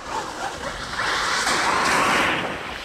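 Wet slush sprays and splashes under small tyres.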